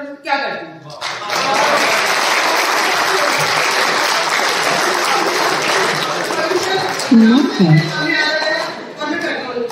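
A crowd applauds loudly in a large room.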